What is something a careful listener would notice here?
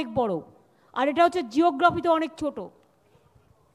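A middle-aged woman speaks with animation into a microphone.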